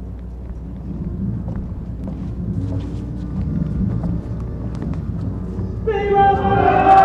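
Footsteps shuffle across a wooden stage.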